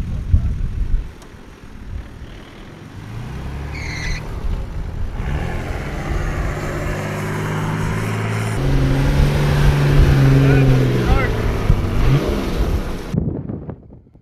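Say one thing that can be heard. An engine revs hard as a vehicle climbs through soft sand.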